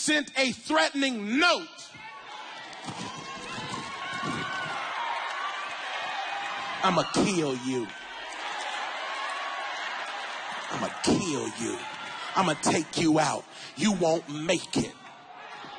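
A man preaches with animation through a microphone, echoing in a large hall.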